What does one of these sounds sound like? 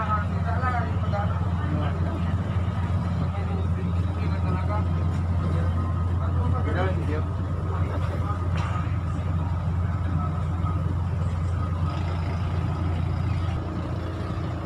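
A boat engine hums low and steady.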